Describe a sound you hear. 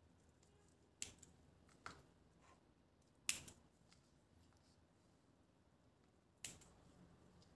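Scissors snip through small conifer sprigs.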